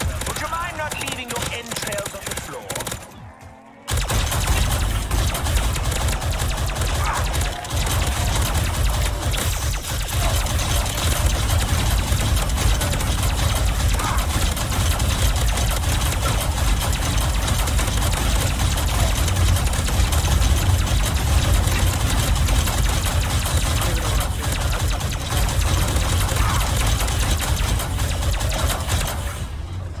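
Energy weapons fire rapidly, with crackling blasts.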